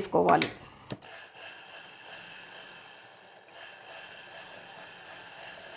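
A sewing machine runs with a quiet, steady hum.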